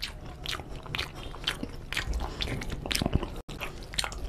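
Fingers squish and mix rice in a plate close to a microphone.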